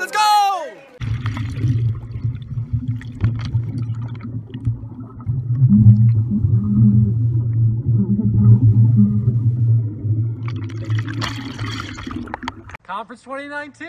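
Bubbles gurgle and rumble underwater.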